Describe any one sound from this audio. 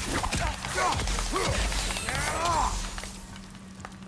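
Weapons strike with sharp, heavy impacts.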